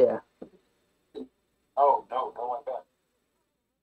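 A man speaks briefly and casually, close to a microphone.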